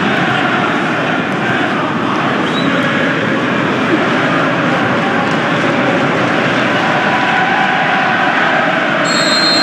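A large crowd roars steadily in a wide open space.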